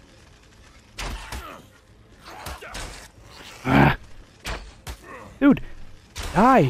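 A bow twangs as arrows fly.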